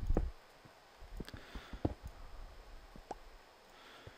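Stone blocks crack and crumble as they are broken.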